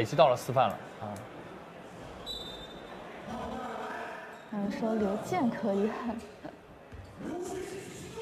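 A crowd murmurs in an echoing indoor hall.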